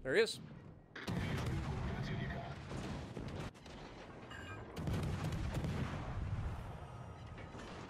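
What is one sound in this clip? Heavy naval guns fire in loud booming bursts.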